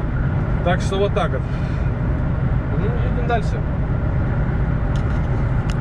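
Road noise rumbles steadily from a car driving fast on a motorway.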